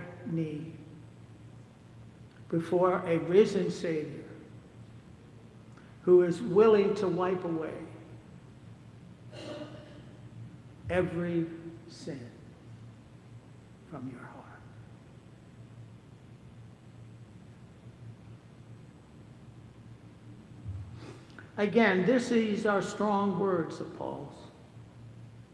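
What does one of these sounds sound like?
A man speaks slowly and calmly through a microphone in a large echoing hall, with long pauses.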